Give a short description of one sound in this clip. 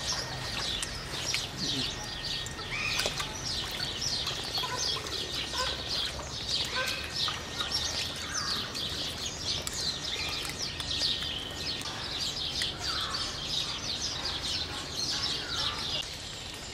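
Otters chirp and squeak in high, rapid calls.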